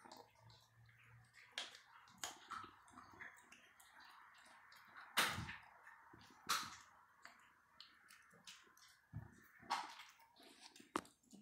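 A cat chews and tears at a rat with wet, crunching sounds, close up.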